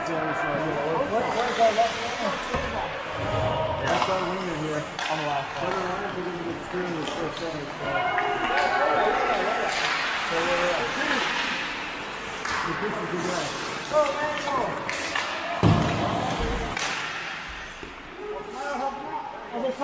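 Ice skates scrape and carve across the ice in an echoing rink.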